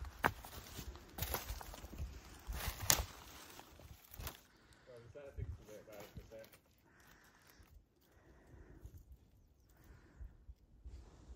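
Hooves crunch over dry leaves and stones.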